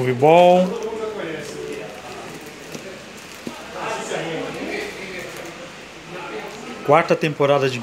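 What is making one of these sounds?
Plastic disc cases clack softly against each other as they are flipped through.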